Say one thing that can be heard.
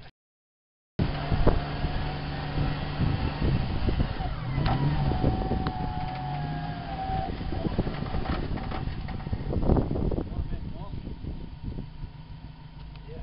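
A four-wheel-drive SUV's engine labours under load as the vehicle is winched up a muddy slope.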